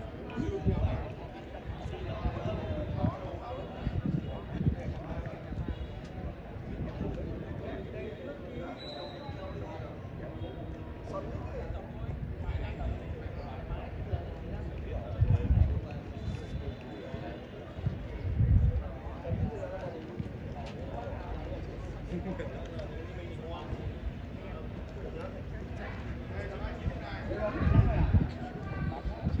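Young men chat casually nearby.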